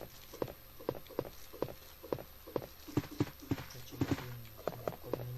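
Footsteps thud on a wooden floor at a steady walking pace.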